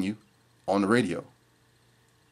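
A man speaks closely into a microphone.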